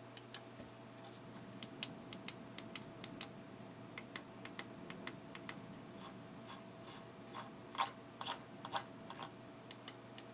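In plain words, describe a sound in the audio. A mouse scroll wheel ticks as it turns.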